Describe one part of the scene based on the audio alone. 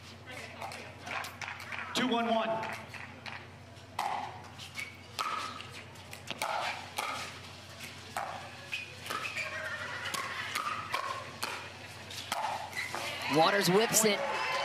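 Paddles pop against a plastic ball in a quick rally.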